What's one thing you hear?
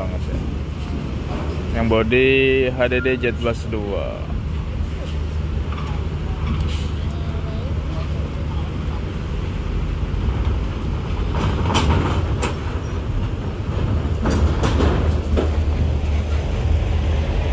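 A bus engine rumbles deeply as the bus drives slowly closer.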